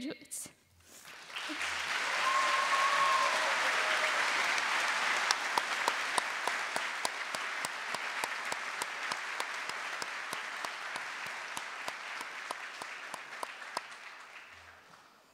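An audience applauds loudly and then slowly quiets down.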